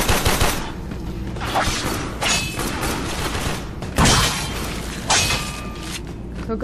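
Gunfire and blasts crack in sharp bursts.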